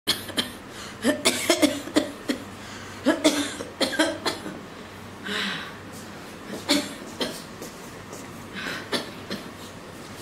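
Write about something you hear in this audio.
A middle-aged woman groans and coughs in pain nearby.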